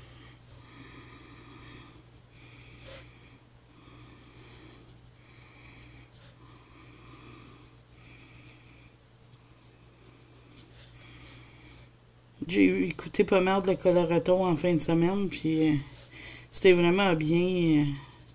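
A coloured pencil scratches softly on paper.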